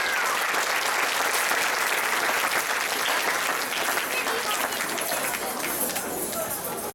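Dancers' boots stamp and shuffle on a wooden stage.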